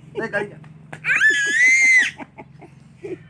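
A toddler babbles and squeals in a high voice.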